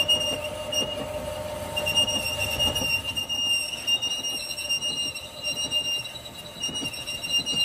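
A cutting tool shrieks as it cuts into spinning steel.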